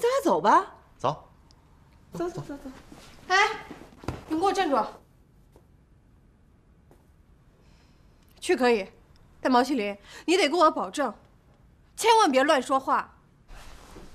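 A young woman speaks firmly and with feeling.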